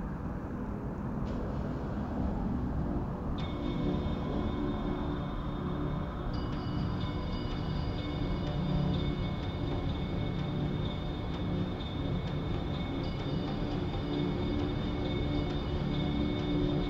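Wind rumbles steadily across the microphone while moving outdoors.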